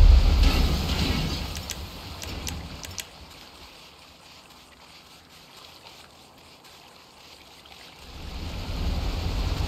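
Footsteps run quickly across sand.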